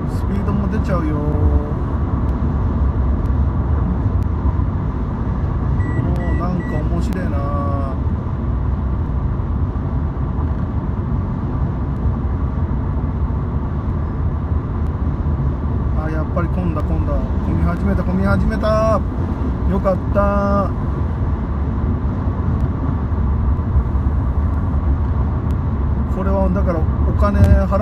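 Tyres roar on the road surface throughout.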